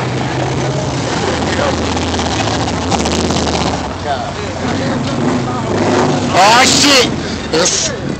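Car engines rumble loudly as vehicles race past close by.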